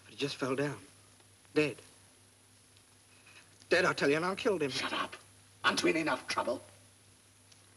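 A young man speaks quietly, close by.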